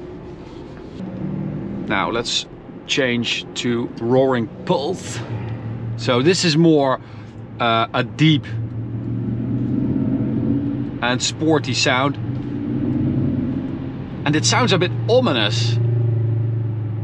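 A car's low road rumble rises as it speeds up.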